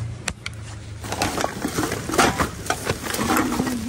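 Newspaper pages rustle as they are handled.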